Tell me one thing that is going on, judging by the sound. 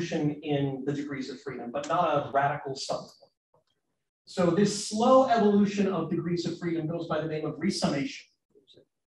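A man speaks calmly into a microphone, lecturing.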